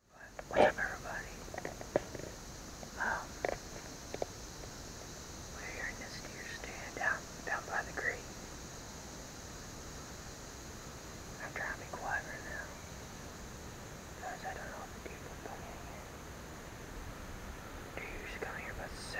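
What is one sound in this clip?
A young man speaks quietly and close up, in short bursts.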